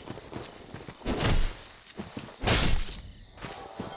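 A sword swings and strikes in a fight.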